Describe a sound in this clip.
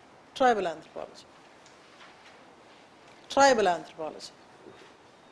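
A woman speaks calmly in short bursts, close by.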